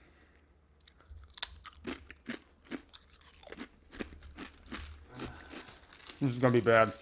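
A man crunches food close to a microphone.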